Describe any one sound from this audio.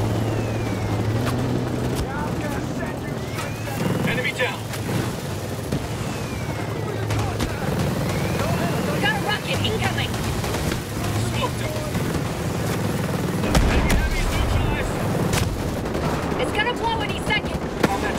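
An armored vehicle's engine rumbles as it drives.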